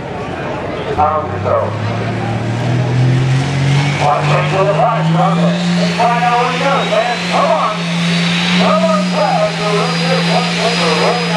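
A tractor engine roars and revs higher as it pulls a heavy load.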